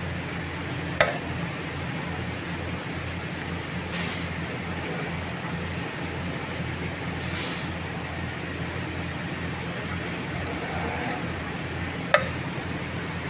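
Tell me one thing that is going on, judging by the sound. A metal tool clicks sharply against metal a few times.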